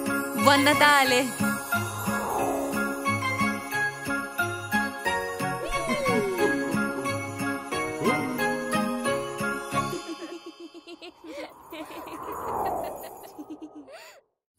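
A sleigh whooshes through the air.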